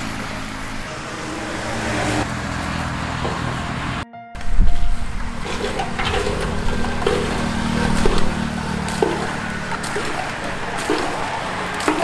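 A hand pump creaks and knocks with each stroke.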